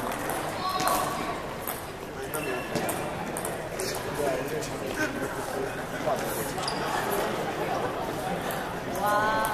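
A ping pong ball clicks sharply on a table and paddles.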